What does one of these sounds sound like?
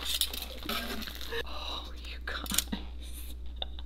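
Metal tongs click and scrape on a griddle.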